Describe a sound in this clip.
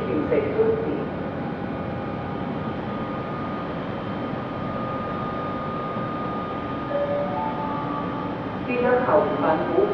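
A passenger train rumbles and clatters past along the tracks.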